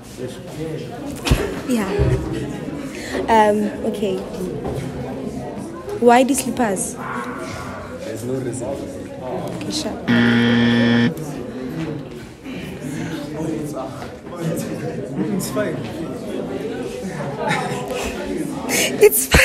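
A young man answers and laughs.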